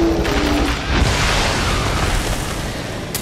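A large explosion booms and roars.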